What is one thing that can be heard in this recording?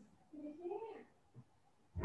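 A young child speaks briefly through an online call.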